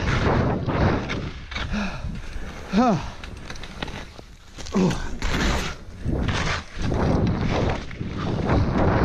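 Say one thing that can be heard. Skis swish and carve through soft snow.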